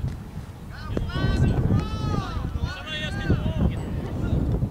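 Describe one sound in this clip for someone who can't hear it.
Young men shout to each other in the distance.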